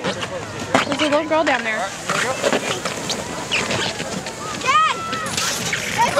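A plastic sled slides and scrapes over snow.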